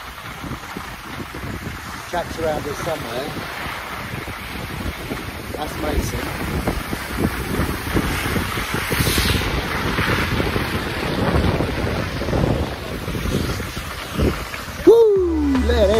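Skis scrape and hiss over packed snow.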